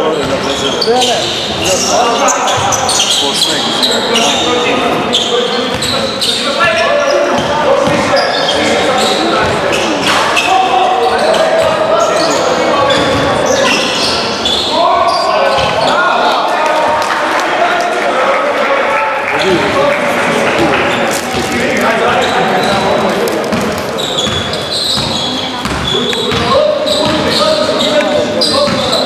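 A basketball bounces with dull thuds on the court.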